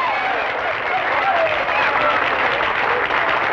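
A band plays trumpets and guitars.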